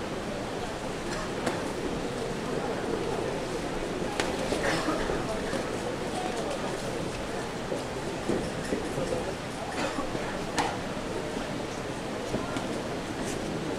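Boxing gloves thud against a body.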